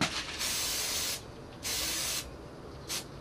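An aerosol can sprays in short hissing bursts.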